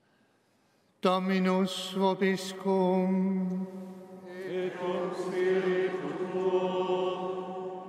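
An elderly man sings a chant through a microphone in a large echoing hall.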